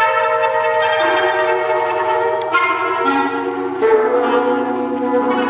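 A horn plays sustained low notes.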